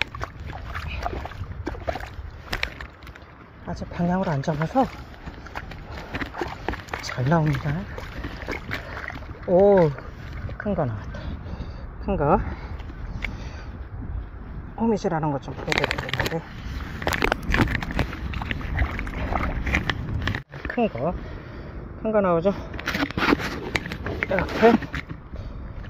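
Air bubbles gurgle and rush underwater.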